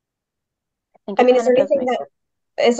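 A young woman asks a question over an online call.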